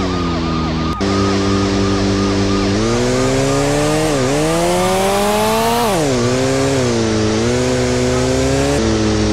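A motorcycle engine hums steadily and revs up and down.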